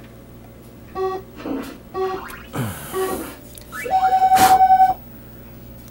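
A small loudspeaker beeps a few times, then sounds a longer buzzing tone.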